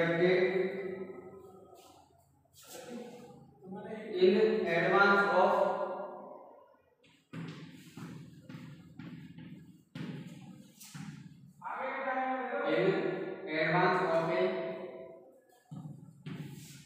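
A young man speaks calmly and explains at length, close by.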